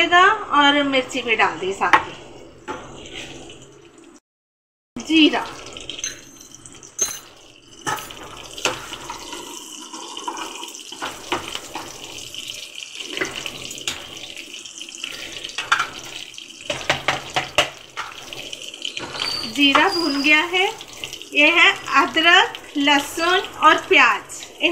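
Hot oil sizzles in a pan.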